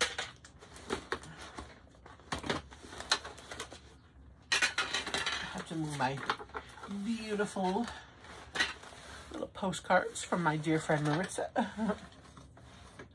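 Wrapping paper rustles and crinkles close by.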